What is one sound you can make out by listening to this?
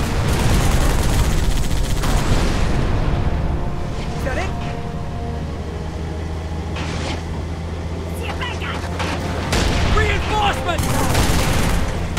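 A heavy armoured vehicle's engine rumbles low and steadily as it rolls along.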